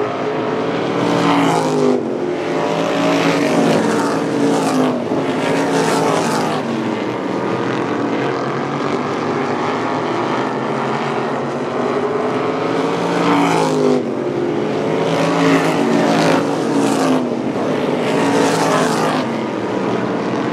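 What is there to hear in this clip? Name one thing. Car engines rise and fall in pitch as cars pass by.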